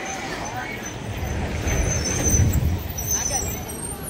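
A heavy truck rumbles past.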